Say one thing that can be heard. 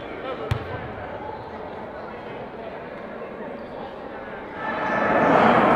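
Several young men chatter in a large echoing hall.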